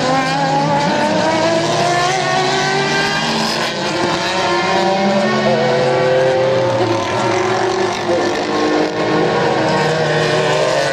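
Racing car engines roar loudly, shifting pitch as the cars go through the bends.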